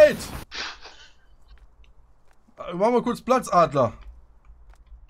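A man talks into a close microphone.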